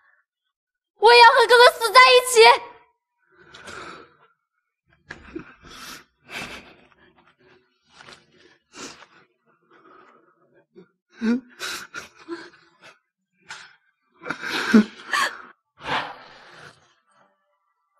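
A young woman sobs and wails loudly.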